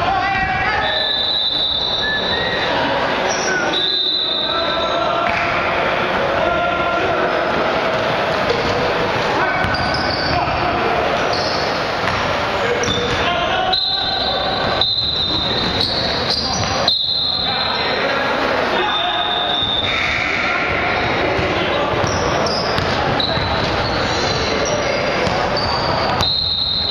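Players shout to each other in an echoing gym.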